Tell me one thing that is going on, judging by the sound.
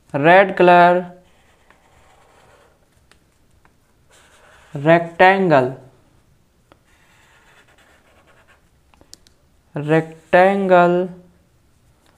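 A felt-tip marker squeaks and scratches across paper.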